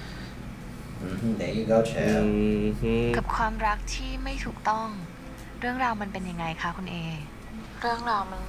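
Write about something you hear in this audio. A woman speaks softly, heard through a loudspeaker.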